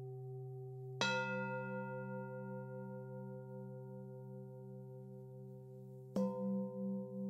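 A singing bowl is struck and rings out brightly.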